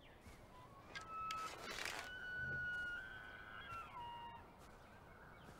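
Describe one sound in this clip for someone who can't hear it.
A bowstring creaks as a bow is drawn.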